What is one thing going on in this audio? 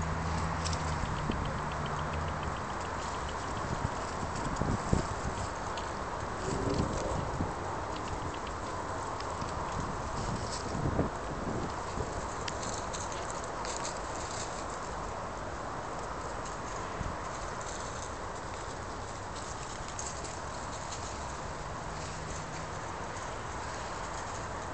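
Squirrels scurry over dry leaves outdoors.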